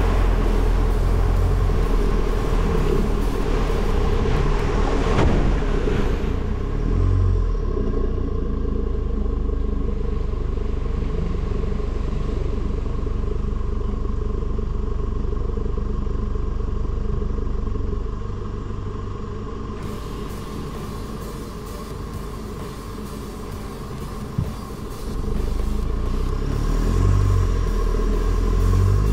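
A vehicle engine rumbles close by.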